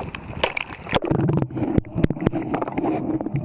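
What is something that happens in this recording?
Water gurgles and bubbles underwater, muffled.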